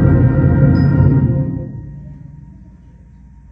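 A school band plays a final chord that rings out in a large echoing hall.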